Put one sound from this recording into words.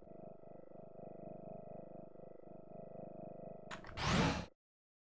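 Game music plays softly.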